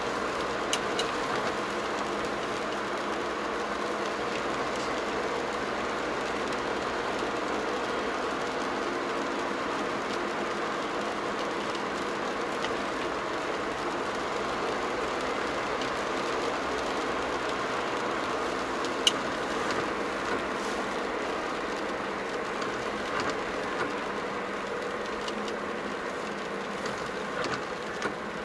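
Windscreen wipers sweep across the glass with a soft thump.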